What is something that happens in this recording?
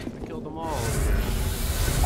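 Flames burst with a roar.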